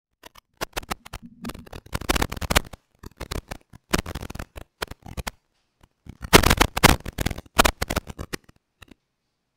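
A microphone knocks and rustles as it is handled.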